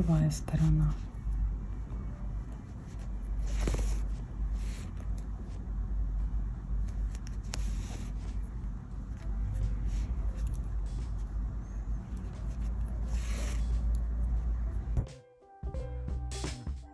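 Soft yarn rustles and brushes under fingers.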